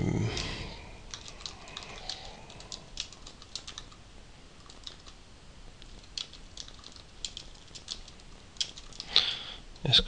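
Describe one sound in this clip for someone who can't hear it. Keys click quickly on a keyboard as someone types.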